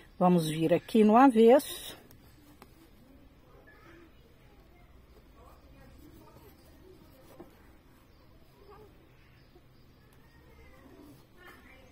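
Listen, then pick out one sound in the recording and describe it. Thread rasps softly as it is pulled through cloth.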